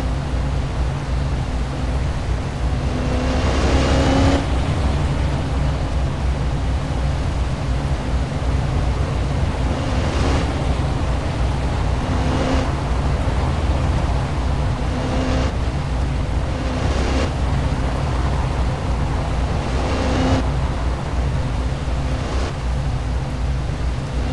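A car engine hums steadily at cruising speed.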